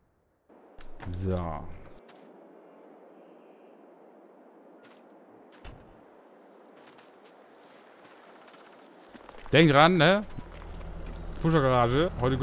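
A man talks animatedly into a close microphone.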